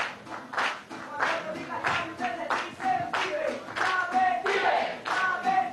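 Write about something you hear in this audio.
People clap their hands in time.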